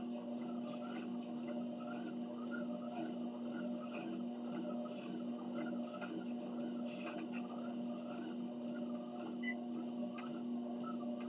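Footsteps thud rhythmically on a treadmill belt.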